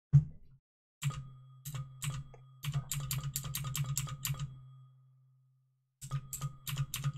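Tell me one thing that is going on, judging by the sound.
A computer game makes quick clicking sound effects.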